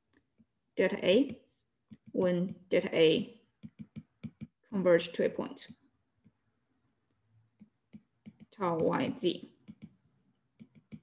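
A young woman speaks calmly in short phrases over an online call.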